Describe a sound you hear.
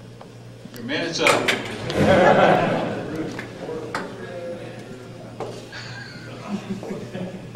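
A man speaks through a microphone into an echoing hall.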